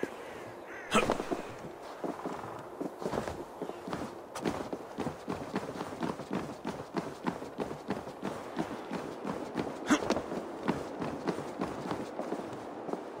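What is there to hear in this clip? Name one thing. Footsteps and hands scrape and thud on rough rock while climbing.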